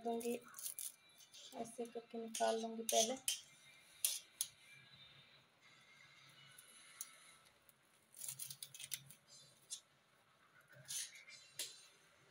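A knife chops through leafy stems on a hard surface.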